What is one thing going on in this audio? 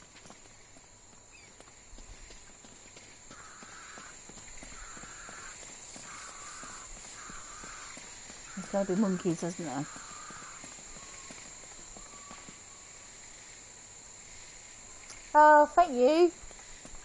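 Footsteps crunch softly on leaves and undergrowth.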